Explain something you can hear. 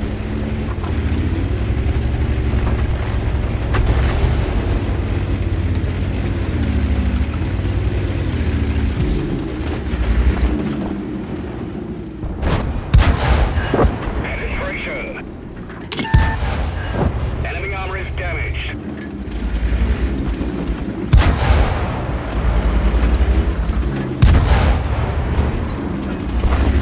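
A tank engine rumbles and whines steadily.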